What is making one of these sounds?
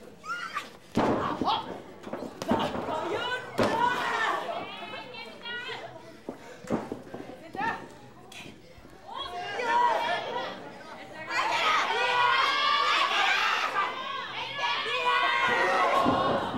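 A crowd in an indoor hall shouts and cheers.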